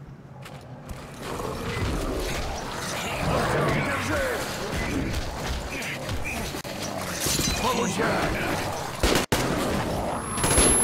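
Monsters snarl and roar loudly up close.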